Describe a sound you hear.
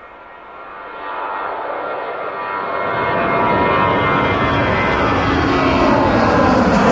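A jet airliner roars loudly as it takes off nearby.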